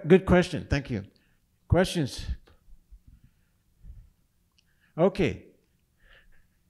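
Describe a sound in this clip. An elderly man speaks slowly into a microphone in a large echoing hall.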